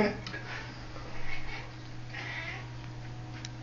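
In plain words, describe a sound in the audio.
A cat meows softly.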